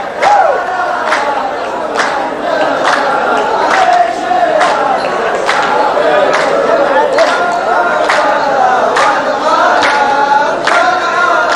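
A group of men sings together in chorus.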